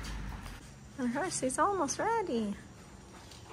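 A horse whinnies nearby.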